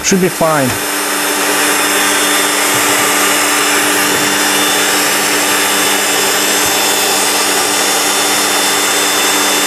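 A drill press motor runs with a steady whirring hum.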